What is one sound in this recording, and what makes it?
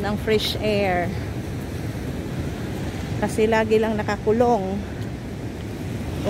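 Waves crash and churn against a sea wall.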